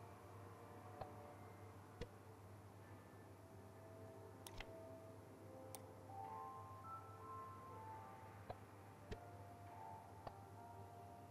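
Sharp clicks sound as a sliding panel snaps into place.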